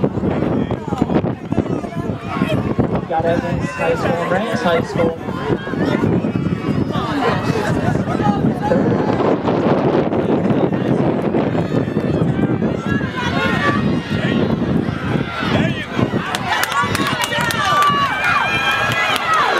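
A crowd of spectators cheers and shouts nearby outdoors.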